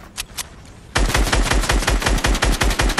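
A gun fires in a fast, steady burst.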